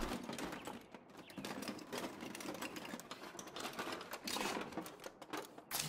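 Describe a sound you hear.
Hands rummage through a drawer cabinet.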